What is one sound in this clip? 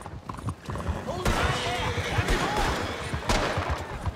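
A horse-drawn carriage rattles past.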